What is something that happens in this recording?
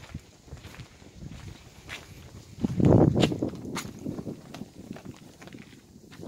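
Cloth flags flap and flutter in the wind.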